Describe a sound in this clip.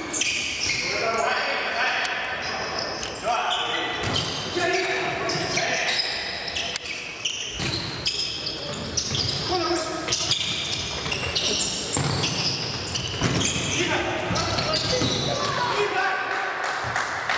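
A ball is kicked with dull thuds in an echoing hall.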